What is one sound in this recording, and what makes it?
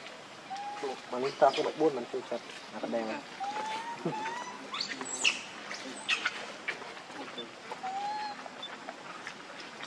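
A baby monkey squeaks and chirps softly close by.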